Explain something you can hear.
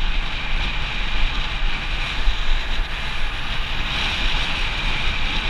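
Wind rushes loudly past a moving bicycle.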